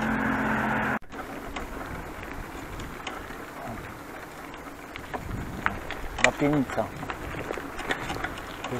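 Bicycle tyres rumble and rattle over cobblestones.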